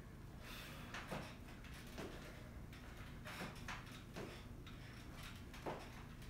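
Feet thump on a wooden step in a steady rhythm.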